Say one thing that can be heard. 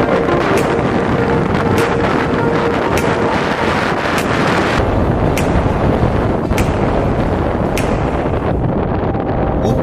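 Wind rushes loudly past a moving vehicle.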